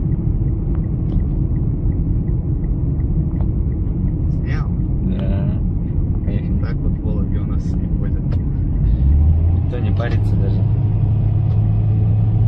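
Tyres roar steadily on a highway road.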